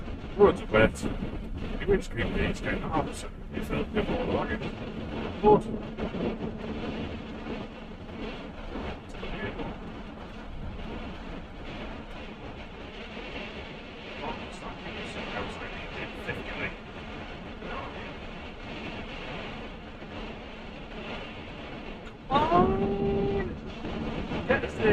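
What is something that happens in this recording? A van engine hums steadily while driving.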